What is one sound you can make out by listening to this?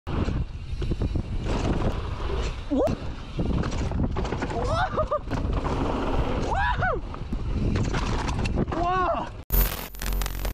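Bicycle tyres rattle and crunch over a bumpy dirt trail.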